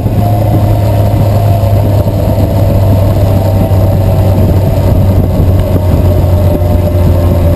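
A motorcycle engine rumbles steadily while riding along a road.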